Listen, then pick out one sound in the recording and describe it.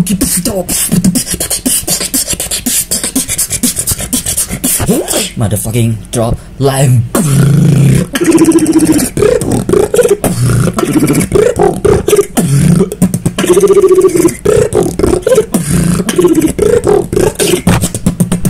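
A young man beatboxes close to a microphone with sharp percussive clicks and hums.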